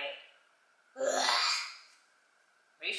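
A young boy exclaims loudly in surprise.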